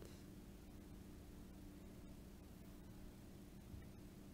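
A finger taps lightly on a phone's touchscreen.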